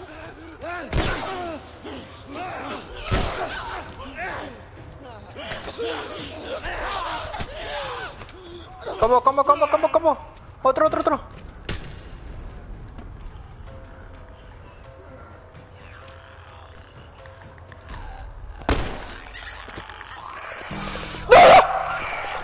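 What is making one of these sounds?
Gunshots bang sharply now and then.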